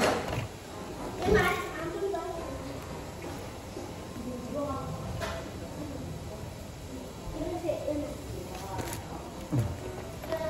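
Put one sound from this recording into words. Crisp snacks crunch as a young man chews.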